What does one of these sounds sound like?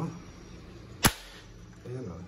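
A plastic trap snaps shut with a sharp crack.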